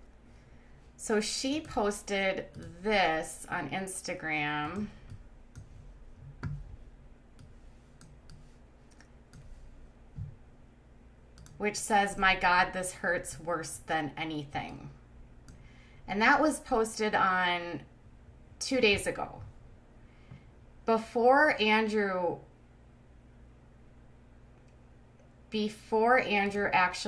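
A young woman speaks close to a microphone, pausing between phrases.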